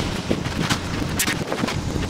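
A rake scrapes through wet concrete.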